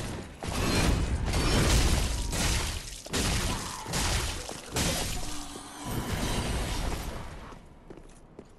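Heavy blows and crashes of a fight burst out loudly, one after another.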